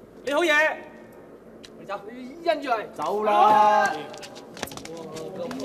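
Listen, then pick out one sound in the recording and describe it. Men shout and argue close by.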